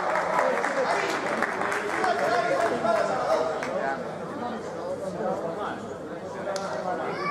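Spectators talk and murmur in the stands.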